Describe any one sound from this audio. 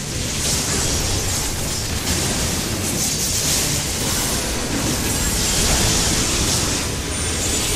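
Weapons clash and strike a large monster.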